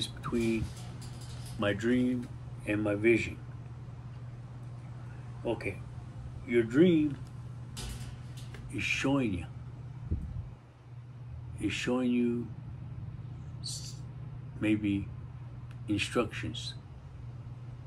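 A middle-aged man speaks calmly close by, with pauses.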